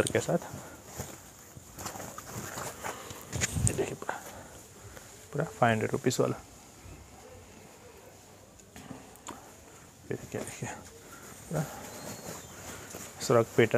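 Cloth rustles and swishes as garments are lifted and handled close by.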